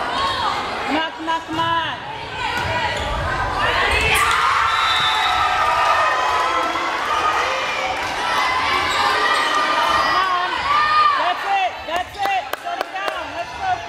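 A volleyball is hit with sharp slaps.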